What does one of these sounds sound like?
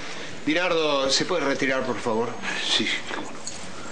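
A man speaks loudly and forcefully nearby.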